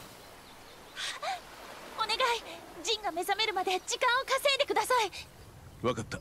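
A young woman speaks eagerly and pleads.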